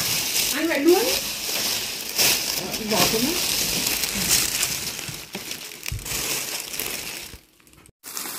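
A plastic bag rustles and crinkles as hands rummage through it.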